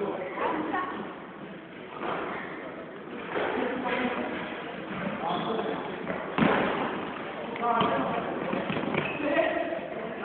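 Sneakers squeak and patter on a hard floor.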